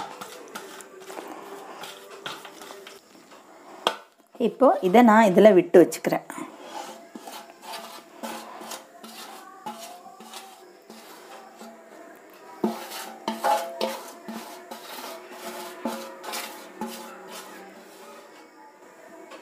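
Fingers scrape and squelch wet dough inside a metal bowl.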